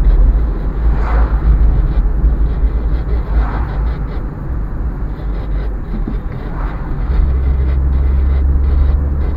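A car engine hums steadily with road rumble from inside the cabin.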